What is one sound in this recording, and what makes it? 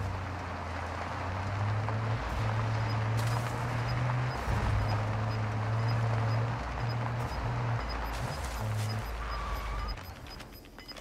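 A car engine drones steadily while driving over rough ground.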